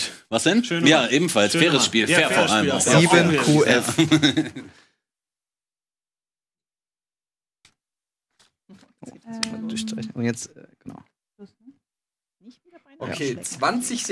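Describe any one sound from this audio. Several men talk and laugh with animation through microphones.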